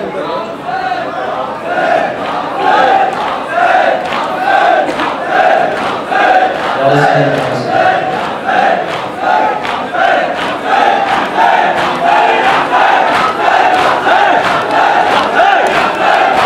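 A crowd of men beats their chests in a steady rhythm.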